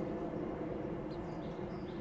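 A small bird pecks at seeds on a wooden rail.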